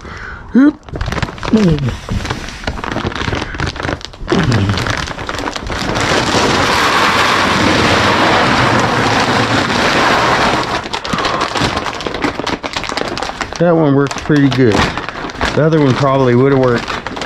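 A plastic feed bag crinkles and rustles close by.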